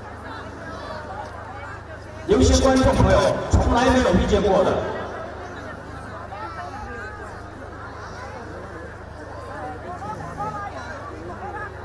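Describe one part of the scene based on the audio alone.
Two water buffalo bulls shove and grind their horns together.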